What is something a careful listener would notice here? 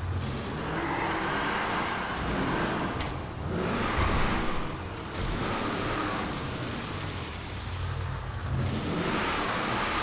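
An off-road truck engine roars and revs.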